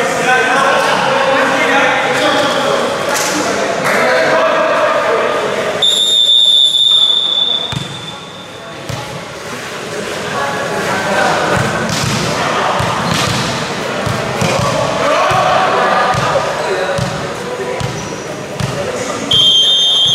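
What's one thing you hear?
Players shout and chatter in a large echoing hall.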